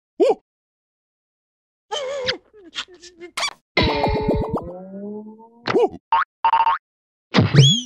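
A cartoon creature jabbers and exclaims in a high, squeaky voice.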